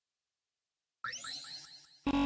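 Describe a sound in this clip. A bright chime rings out and fades.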